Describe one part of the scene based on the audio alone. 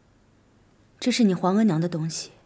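A woman answers calmly and gently nearby.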